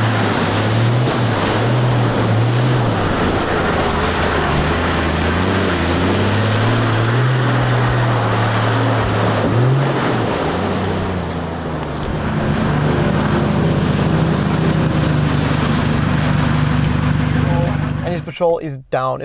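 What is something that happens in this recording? A vehicle engine revs and roars as it drives through water.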